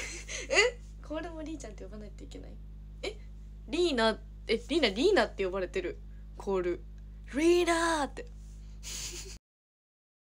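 A young woman laughs close to a microphone.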